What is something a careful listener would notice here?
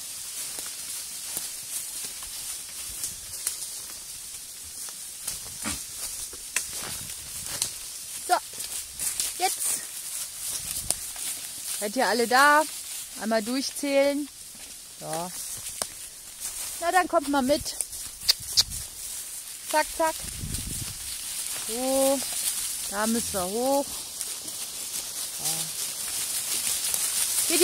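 Hooves and feet rustle through dry leaves and twigs.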